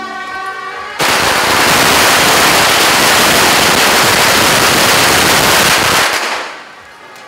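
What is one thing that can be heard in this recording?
Firecrackers crackle and bang in a loud, rapid burst.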